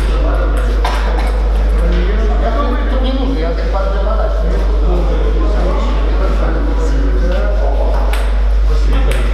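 Table tennis balls click on tables and paddles in a large echoing hall.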